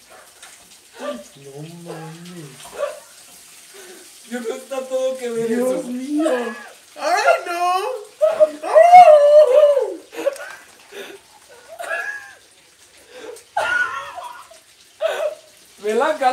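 A woman exclaims and laughs excitedly.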